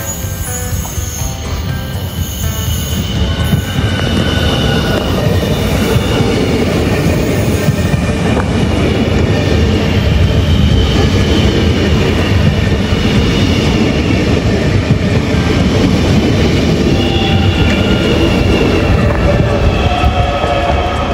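An electric train rumbles past close by.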